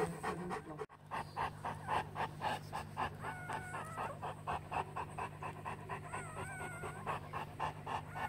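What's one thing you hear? A newborn puppy suckles with quick, rhythmic wet sucking sounds.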